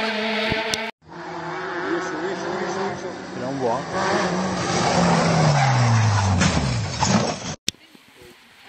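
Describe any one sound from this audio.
A rally car's engine roars up close and drops in pitch as the car races past.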